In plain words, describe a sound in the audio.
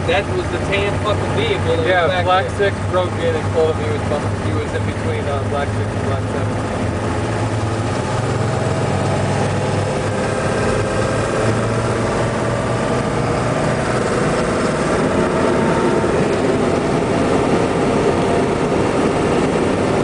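A heavy vehicle's engine drones steadily while driving.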